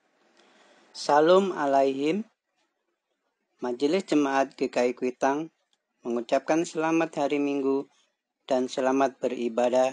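A man speaks calmly into a microphone, in short phrases.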